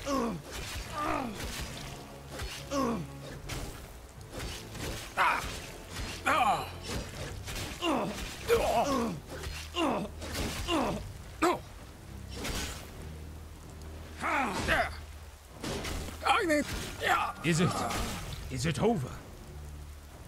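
Swords clash and strike in a close fight.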